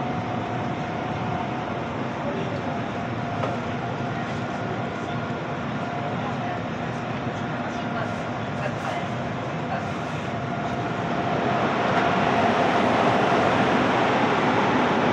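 A train rolls along the tracks with a steady rumble and hum, heard from inside.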